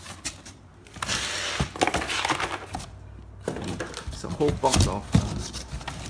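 Cardboard box flaps rustle and scrape as a hand pulls them open.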